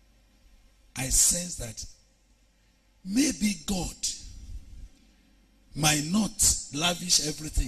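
A man preaches with animation into a microphone, in bursts with pauses.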